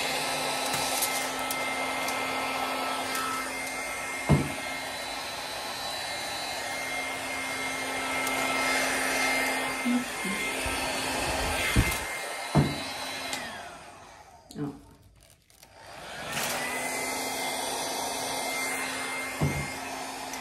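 A hair dryer blows with a steady whirring hum, stops briefly, then starts again.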